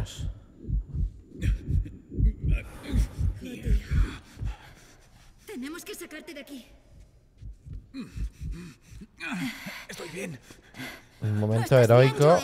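A middle-aged man talks into a close microphone.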